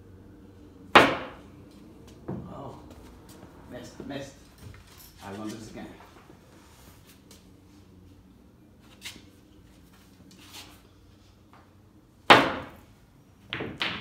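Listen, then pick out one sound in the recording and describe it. Pool balls clack against each other and roll across the table.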